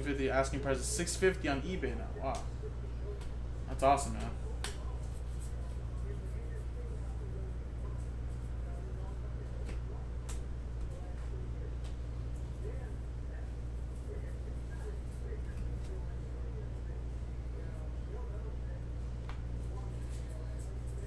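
Trading cards slide and flick against each other as they are shuffled through.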